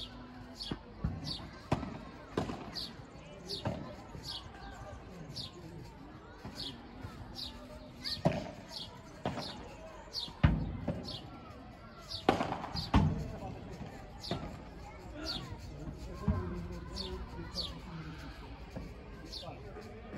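Padel rackets hit a ball back and forth with sharp pops.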